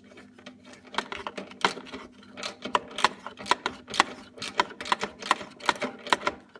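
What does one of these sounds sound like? Plastic parts click and rattle as hands work them loose.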